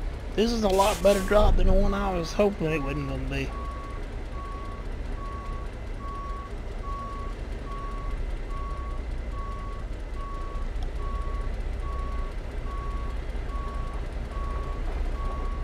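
A truck's reversing alarm beeps steadily.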